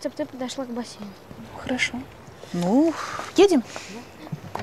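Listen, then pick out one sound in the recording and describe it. A woman talks with animation nearby.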